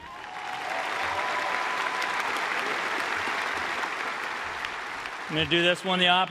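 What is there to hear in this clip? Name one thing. A crowd applauds and cheers in a large echoing stadium.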